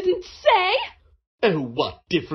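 A woman speaks firmly.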